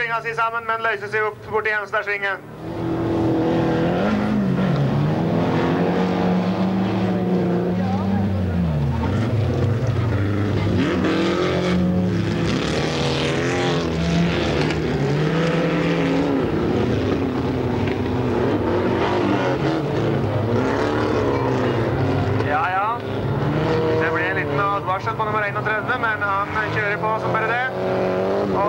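Racing car engines roar and rev outdoors.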